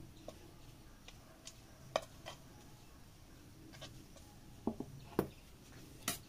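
A metal spoon scrapes and taps against a pan.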